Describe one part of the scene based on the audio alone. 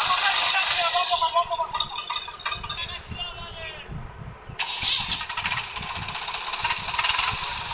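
A tractor engine chugs and strains.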